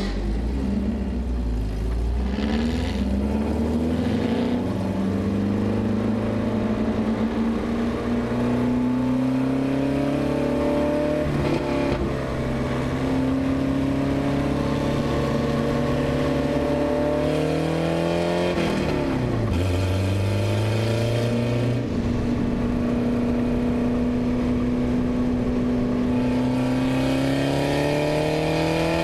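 A race car engine roars loudly up close, revving up through the gears and dropping as it shifts.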